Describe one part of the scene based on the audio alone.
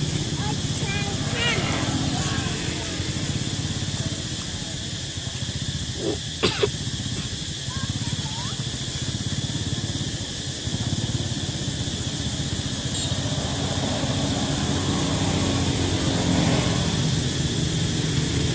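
A plastic bottle crinkles and knocks as a monkey handles it.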